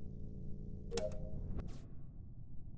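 A short game chime rings as a task is completed.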